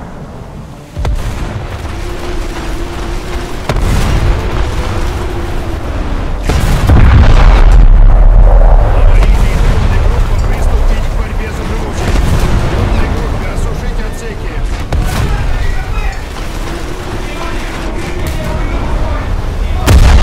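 Heavy guns fire with loud booms.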